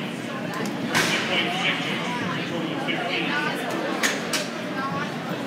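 Hockey sticks tap and clack on the ice.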